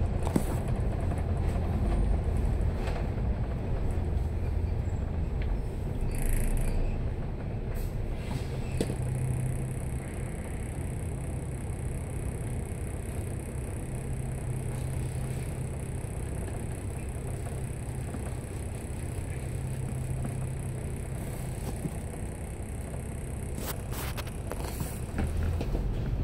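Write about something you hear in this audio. Traffic hums on the road nearby.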